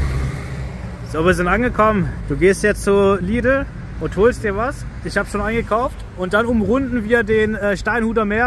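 A young man talks calmly, close to the microphone.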